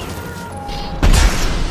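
A single loud rifle shot booms.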